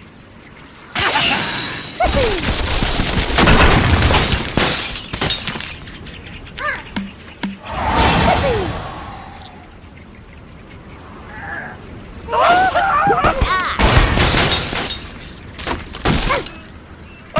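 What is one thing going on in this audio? Wooden blocks crash and tumble down in a cartoon game.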